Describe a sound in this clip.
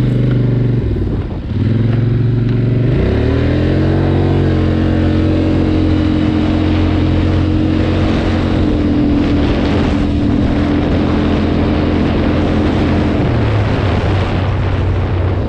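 A quad bike engine runs close by, revving up as it pulls away.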